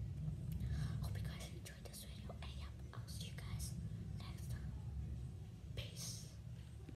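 A young girl speaks quietly and close to a microphone.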